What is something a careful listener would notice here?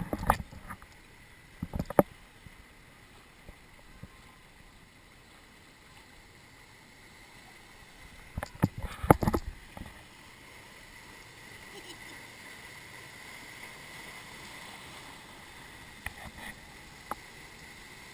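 Water rushes and churns steadily along a channel.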